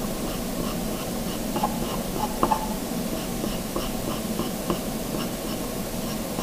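A pencil scratches lightly on paper in short strokes.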